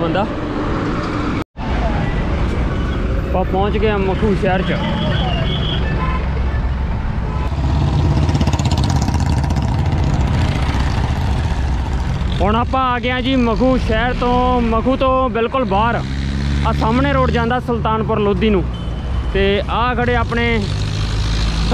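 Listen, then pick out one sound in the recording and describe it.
A motorcycle engine rumbles steadily on the move.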